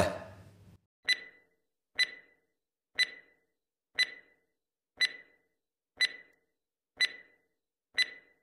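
A timer ticks steadily, once each second.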